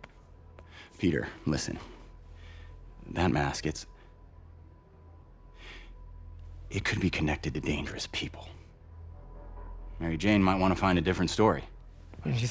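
A man speaks calmly and earnestly, close by.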